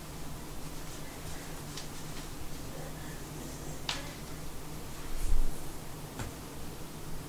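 A person shifts and rolls over on a hard floor with soft rustling and bumps.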